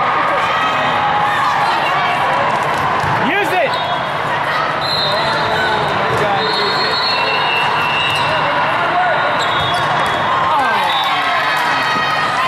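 A volleyball thumps off players' arms.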